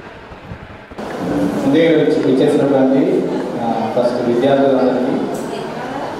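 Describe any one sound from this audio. A man speaks firmly into a microphone, heard through a loudspeaker in an echoing hall.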